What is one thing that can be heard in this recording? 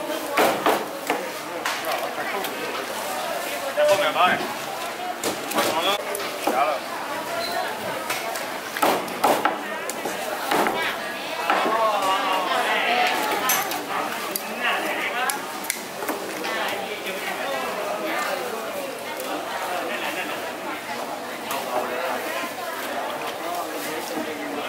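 A cleaver chops hard through meat and bone onto a wooden block.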